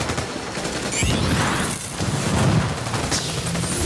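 Explosions boom with a low rumble.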